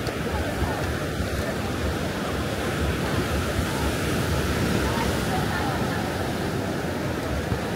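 A crowd of beachgoers chatters in the background.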